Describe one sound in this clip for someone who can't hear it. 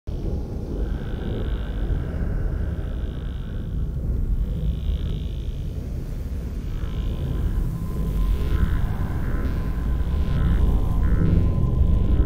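A handheld device beeps in short repeated pulses.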